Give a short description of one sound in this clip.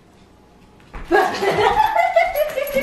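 A dog barks loudly and excitedly.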